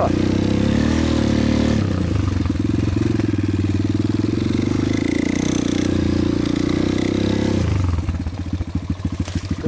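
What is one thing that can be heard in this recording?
A dirt bike engine revs loudly up close, rising and falling, then drops to a lumpy idle.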